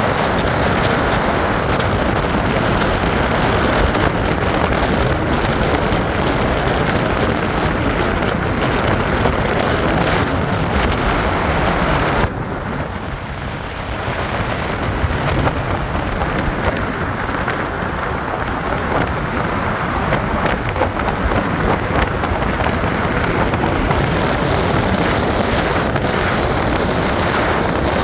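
A car drives along, with engine and road noise heard from inside.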